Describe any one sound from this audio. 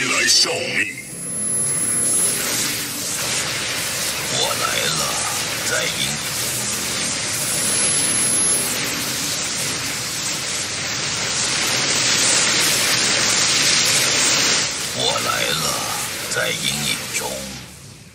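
Energy weapons crackle and blast in a loud battle.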